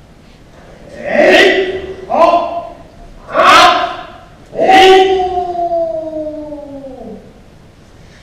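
A man shouts sharply several times in a large echoing hall.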